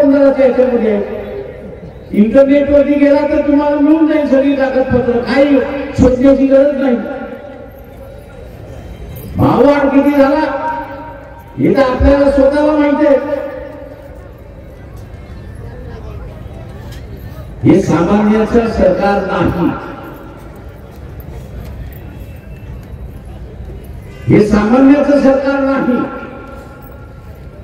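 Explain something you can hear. An elderly man speaks slowly and forcefully through a loudspeaker in a large echoing space, with long pauses.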